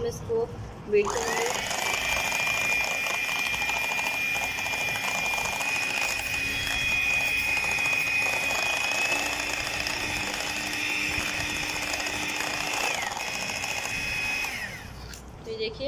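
An electric hand mixer whirs steadily, beating a thick batter.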